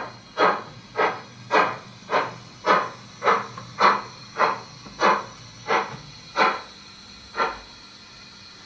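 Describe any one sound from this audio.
A model steam locomotive chuffs in slowing, even puffs that die away.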